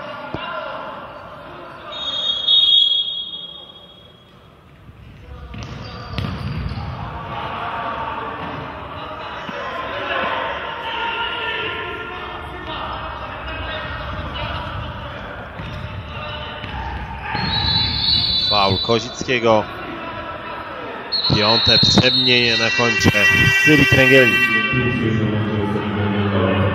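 A crowd murmurs and cheers in a large echoing hall.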